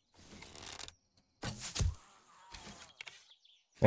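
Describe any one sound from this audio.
An arrow is loosed from a bow with a sharp twang.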